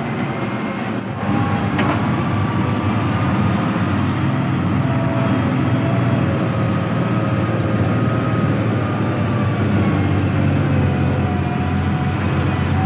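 A heavy truck engine rumbles and labours nearby.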